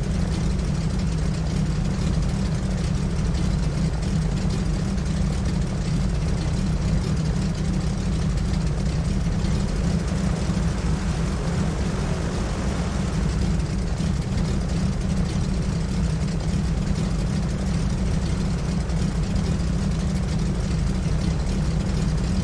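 Twin propeller engines drone steadily as a small plane taxis.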